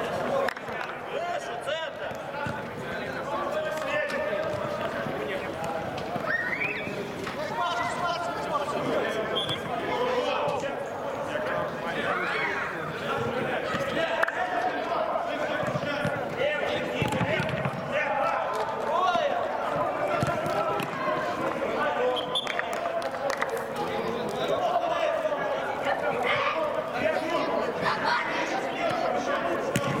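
Several young men shout and call out to each other across an echoing hall.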